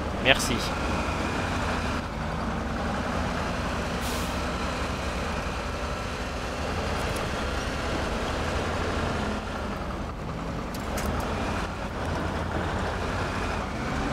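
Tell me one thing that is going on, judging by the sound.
Water splashes under tyres.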